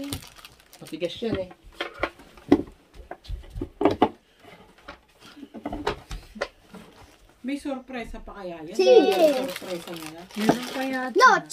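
Foil wrapping crinkles and rustles as it is torn open.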